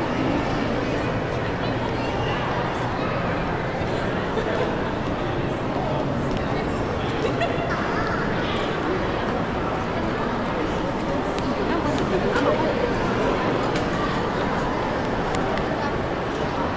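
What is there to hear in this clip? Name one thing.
A crowd of visitors murmurs and chatters in a large echoing hall.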